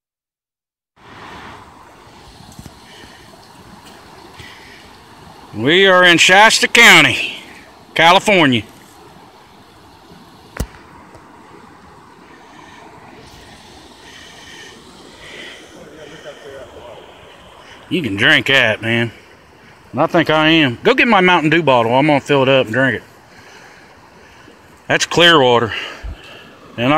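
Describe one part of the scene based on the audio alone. A shallow stream rushes and burbles over rocks.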